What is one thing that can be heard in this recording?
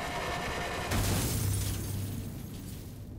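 A car crashes with a loud thud and scrape.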